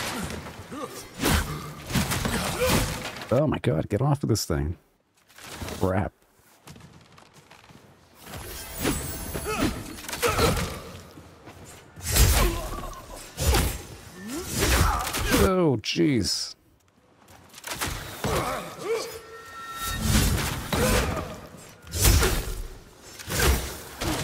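Blades swish and clash in a fast sword fight.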